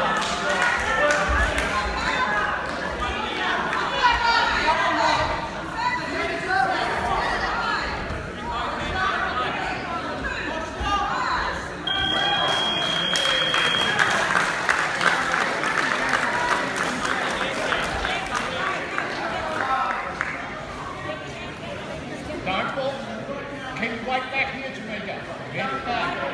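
A crowd of people talk and shout in a large echoing hall.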